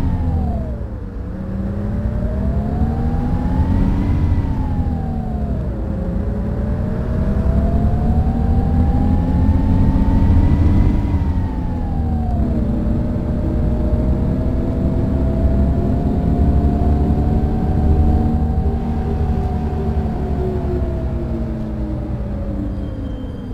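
A bus engine hums and whines, rising and falling in pitch as it speeds up and shifts gears.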